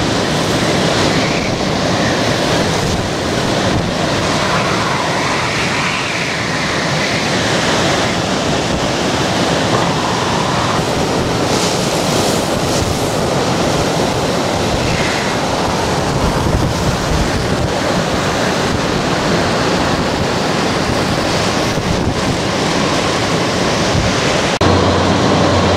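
Hurricane-force wind roars outdoors.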